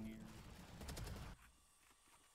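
Gunfire crackles in quick bursts.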